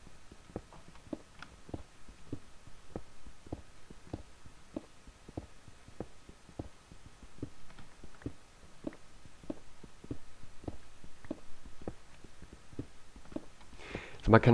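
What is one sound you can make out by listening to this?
A pickaxe chips at stone with quick, regular knocks.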